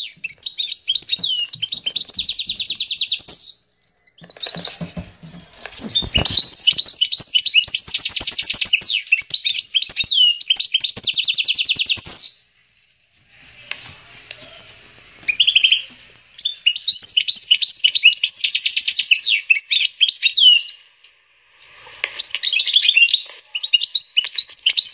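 A goldfinch-canary hybrid sings a long twittering song.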